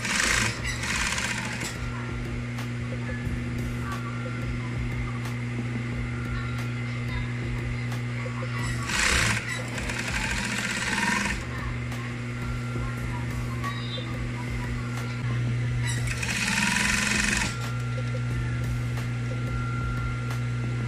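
An electric sewing machine hums steadily as it stitches.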